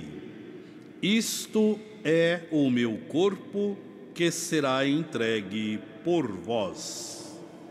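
A man chants slowly into a microphone in a large echoing hall.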